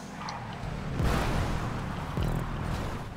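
Two cars bump together with a thud.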